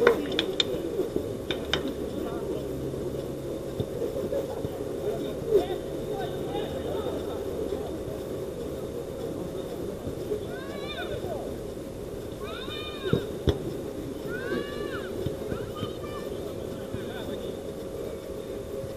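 Players call out to each other across an outdoor pitch in the distance.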